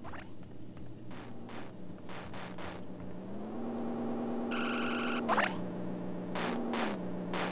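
Footsteps patter softly on a floor.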